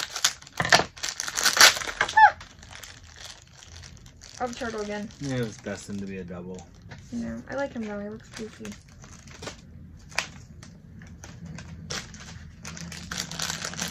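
Plastic wrapping crinkles and rustles close by.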